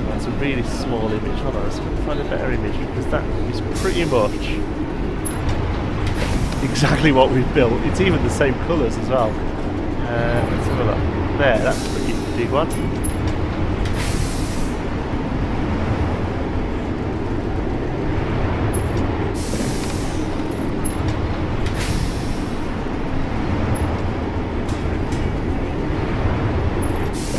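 A roller coaster rumbles and rattles steadily along its track.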